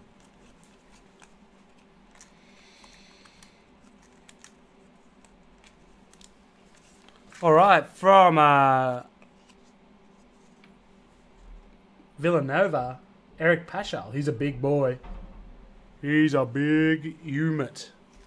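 Card packs rustle and crinkle in hands.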